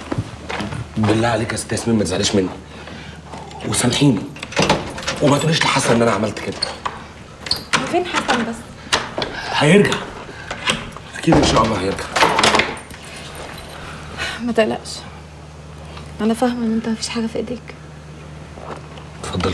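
A woman talks quietly close by.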